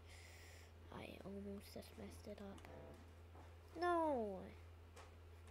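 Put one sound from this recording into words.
A young boy talks briefly, close to a microphone.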